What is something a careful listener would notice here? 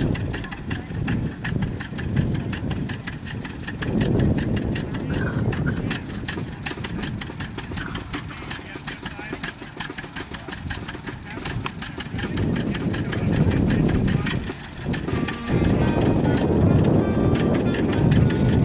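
An old tractor engine putters nearby with a rapid, steady popping beat.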